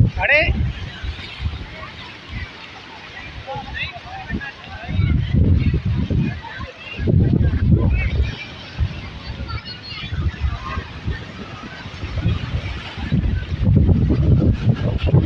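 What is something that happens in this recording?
Water rushes and splashes over rocks in surging bursts.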